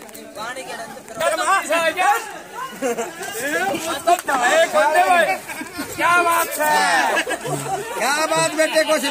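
An elderly man talks with animation outdoors.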